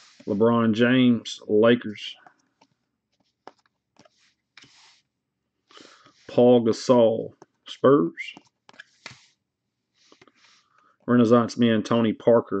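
Cards slide and rustle softly as they are handled.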